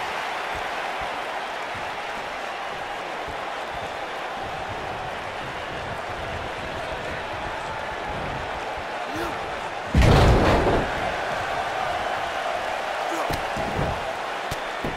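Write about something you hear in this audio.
A large crowd cheers and murmurs steadily in an echoing arena.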